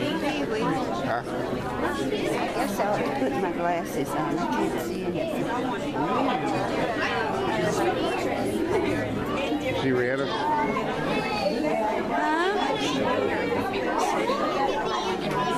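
An elderly woman talks close by.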